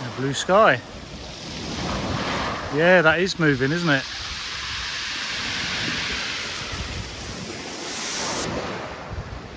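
Waves wash onto a pebble beach.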